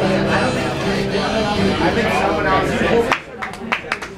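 An acoustic guitar is strummed.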